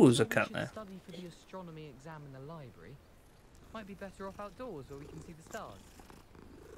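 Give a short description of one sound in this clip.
A cat meows softly.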